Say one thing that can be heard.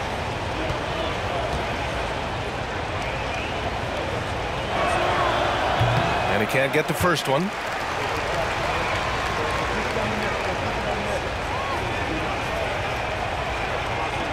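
A large crowd murmurs steadily in a big echoing arena.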